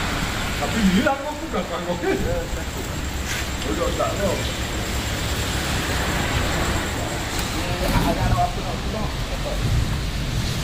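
Traffic rumbles steadily in the background.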